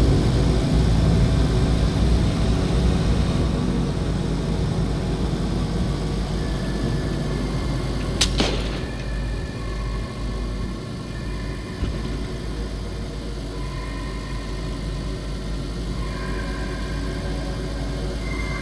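A car engine hums steadily as it drives along a road.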